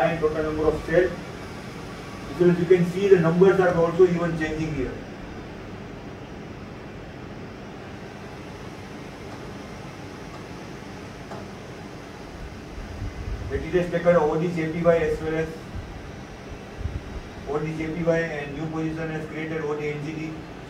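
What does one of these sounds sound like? A man speaks calmly and explains, in short bursts with pauses.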